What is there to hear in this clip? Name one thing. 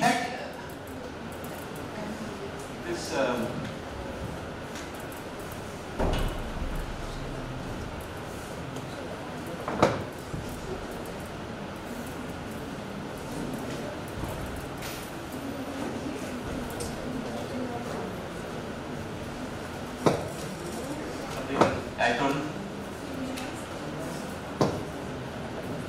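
A man lectures calmly through a microphone in an echoing room.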